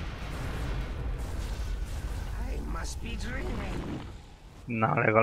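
Fire roars and crackles in a burst of flame.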